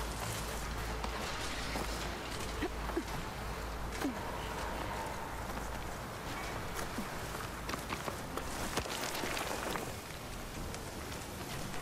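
Leaves and branches rustle as someone pushes through brush.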